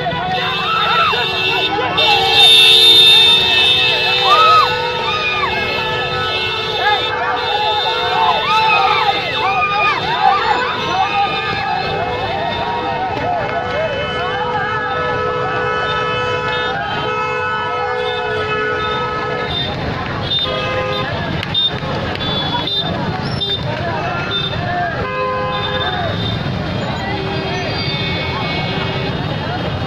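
Motorbike engines hum in busy street traffic.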